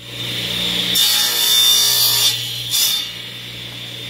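A table saw blade cuts through wood with a loud rasp.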